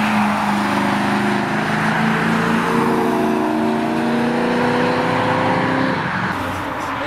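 A sports car engine roars loudly as it accelerates past.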